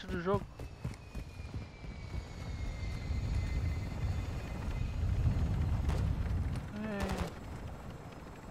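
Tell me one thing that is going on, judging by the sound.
A helicopter's rotors thump and roar close by.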